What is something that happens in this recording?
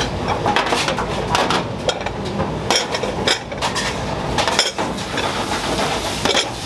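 Ceramic bowls clink as they are set down on a metal tray.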